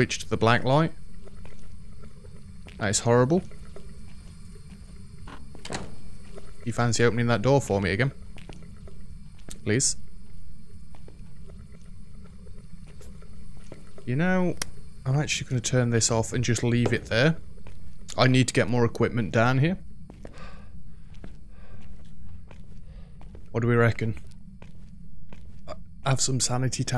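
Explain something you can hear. A young man talks into a close microphone in short bursts, with pauses between.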